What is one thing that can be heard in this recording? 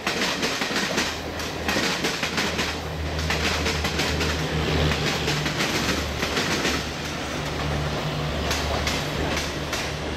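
A diesel locomotive engine rumbles as it passes.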